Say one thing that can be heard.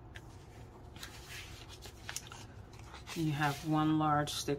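A plastic sleeve crinkles and rustles.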